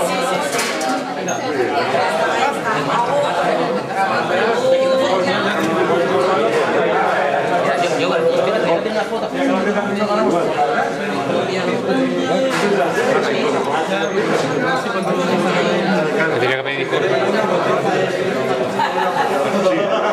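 A crowd of men and women chatter loudly all around, indoors.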